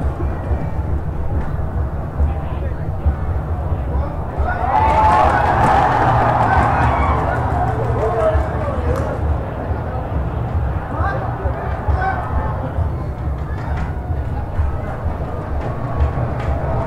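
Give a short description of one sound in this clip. A large stadium crowd roars steadily, swelling louder for a few seconds before settling.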